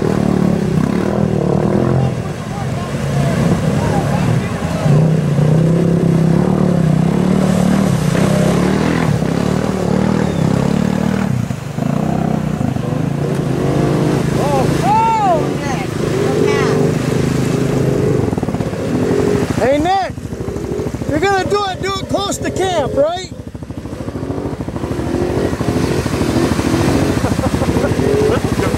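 A quad bike engine roars and revs hard.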